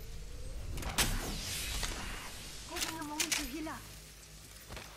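A gun is drawn with a metallic clatter.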